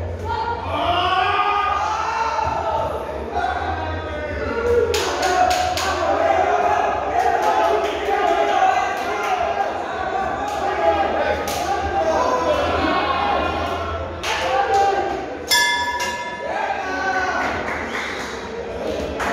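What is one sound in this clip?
Several people talk and call out loudly in an echoing hall.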